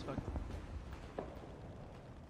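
A shell explodes in the distance with a dull boom.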